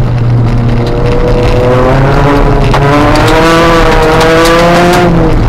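Gravel and stones rattle and clatter against the underside of the car.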